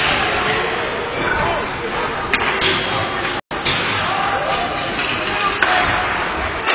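Spectators murmur and call out in an echoing rink.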